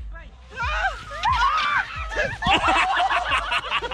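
A body slides down packed snow.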